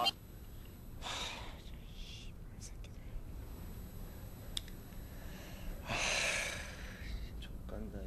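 A young man groans and pants with strain.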